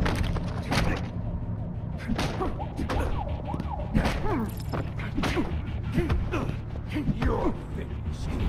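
Punches land with heavy thuds in a fistfight.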